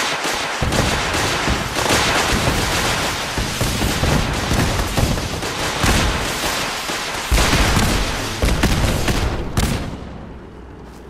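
Explosions boom and roar.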